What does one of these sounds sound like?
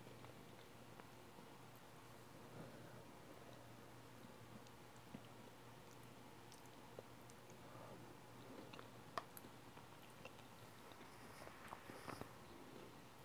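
A metal fork clinks and scrapes against a plate.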